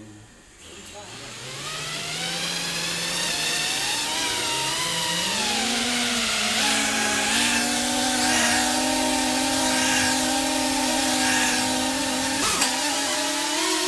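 Small electric drone motors whine, rising in pitch as they spin up and then droning steadily as the drones lift off.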